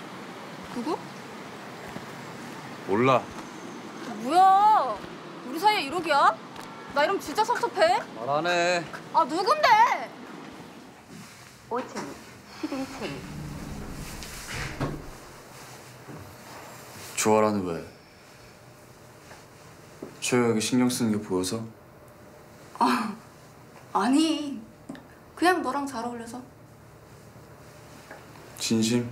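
A young woman speaks, close by.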